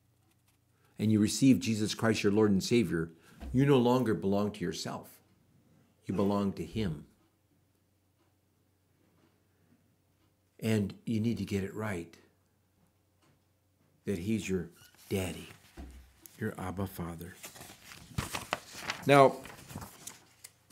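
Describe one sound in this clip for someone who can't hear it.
An elderly man speaks calmly into a close microphone, with pauses.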